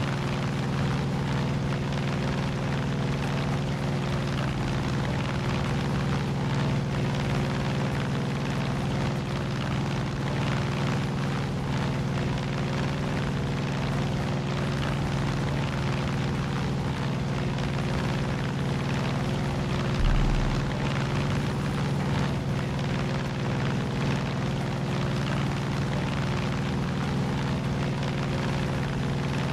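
A small propeller plane's engine drones steadily and loudly.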